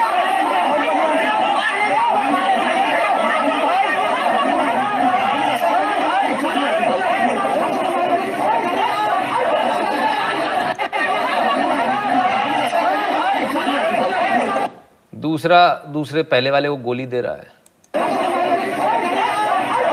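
A crowd of men shout and argue agitatedly at close range.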